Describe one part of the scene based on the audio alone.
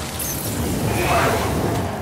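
Flames burst and roar with a whoosh.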